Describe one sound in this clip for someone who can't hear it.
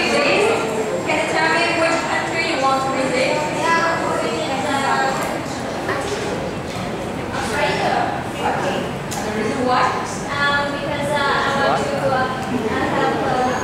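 A young man speaks with animation into a microphone, heard through a loudspeaker in an echoing room.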